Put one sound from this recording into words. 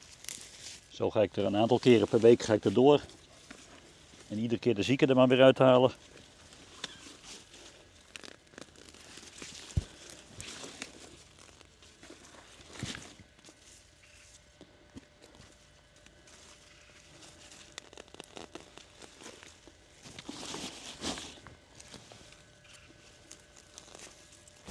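Leafy plants rustle as they are pulled and handled.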